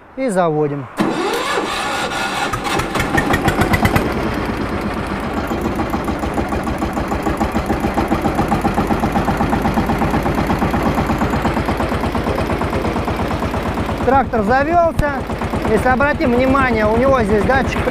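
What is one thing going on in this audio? A small diesel engine starts up and runs with a steady, rapid chugging.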